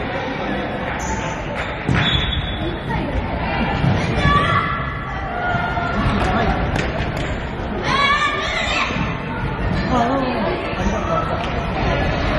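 Children shout and call out in an echoing sports hall.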